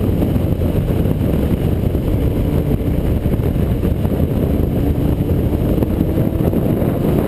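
Wind roars loudly against the rider's helmet.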